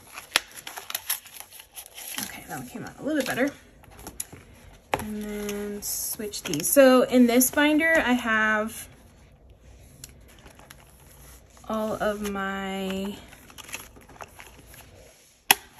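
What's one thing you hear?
Hands shuffle and tap against stiff binder covers.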